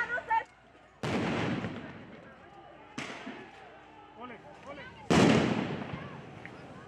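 Tear gas launchers fire with loud booming blasts.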